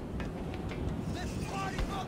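Hands and feet clank on a metal ladder.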